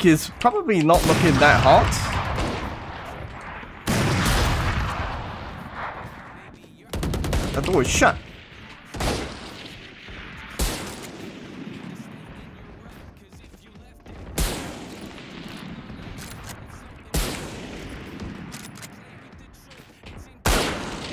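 A sniper rifle fires loud, booming shots that echo away.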